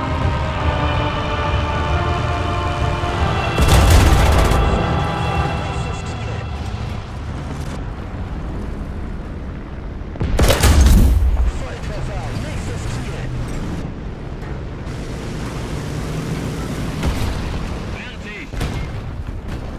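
A tank engine rumbles steadily.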